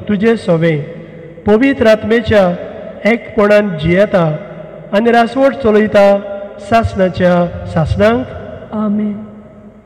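A man chants loudly through a microphone in an echoing hall.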